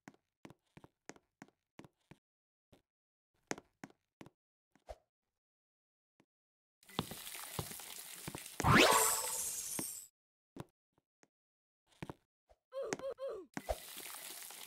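Small footsteps patter quickly.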